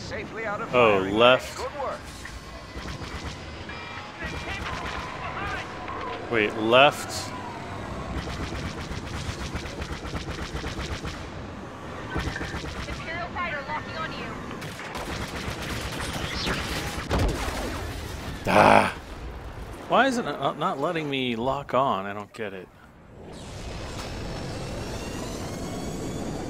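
Starfighter engines roar and whoosh past.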